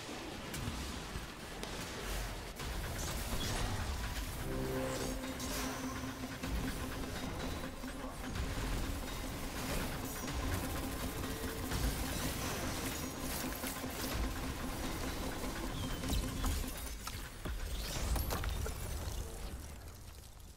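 Gunfire and energy blasts crackle and boom in quick bursts.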